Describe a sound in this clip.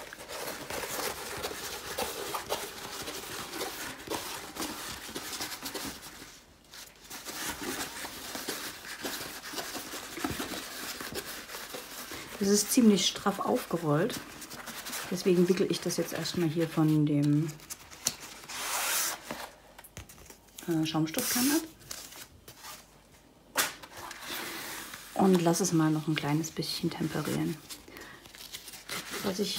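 A plastic sheet rustles and crinkles under a hand.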